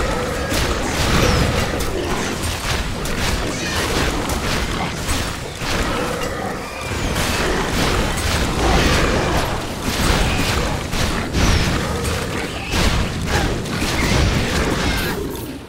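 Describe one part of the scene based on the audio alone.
Blows thud and clash in a fierce fight.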